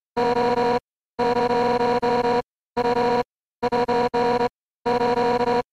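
Rapid, steady electronic blips chatter in short bursts with brief pauses between them.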